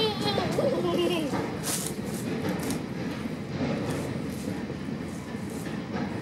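Train wheels clack rhythmically over rail joints.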